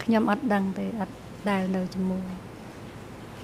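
A woman speaks briefly into a microphone.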